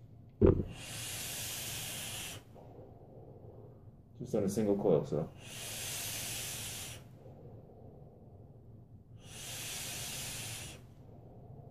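A vaporizer coil sizzles softly in short bursts.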